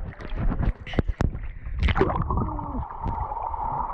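A boy splashes into the water.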